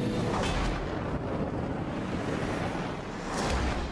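Jet thrusters roar.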